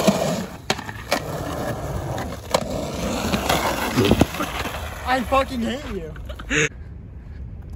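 A skateboard clacks sharply as it lands and hits the ground.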